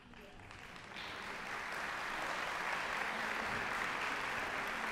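A large orchestra plays in a big echoing hall.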